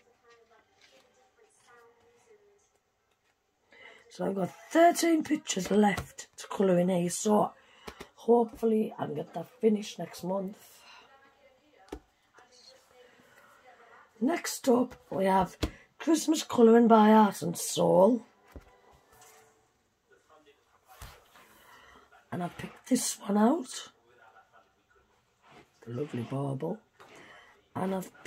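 Paper pages flip and rustle.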